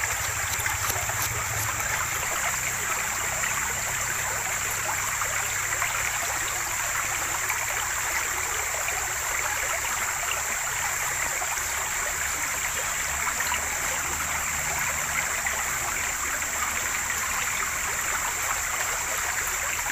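A shallow stream burbles and splashes steadily over stones.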